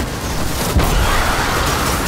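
A large explosion booms.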